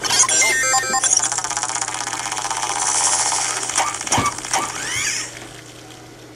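A fast whirring electronic sound rises and falls.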